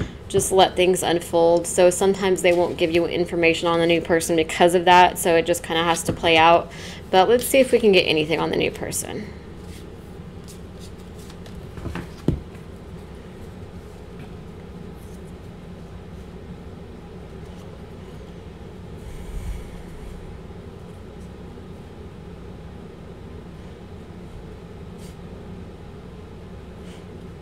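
Cards rustle and flick softly as they are shuffled by hand.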